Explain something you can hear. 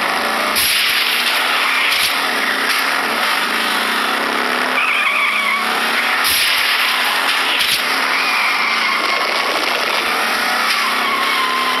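Toy race car engines whine and buzz steadily.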